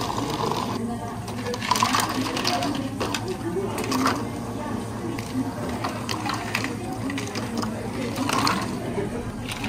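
Ice cubes clatter into plastic cups.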